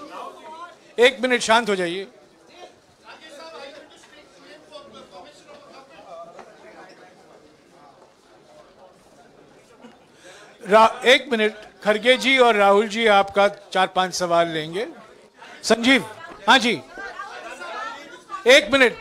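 An elderly man speaks into a microphone through a loudspeaker, loud and echoing.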